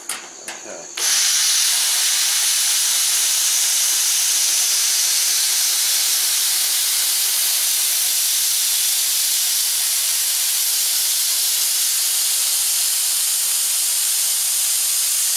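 A cutting torch hisses steadily against metal.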